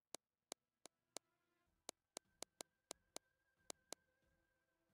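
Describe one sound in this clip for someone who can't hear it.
Short sharp menu clicks sound as options are switched.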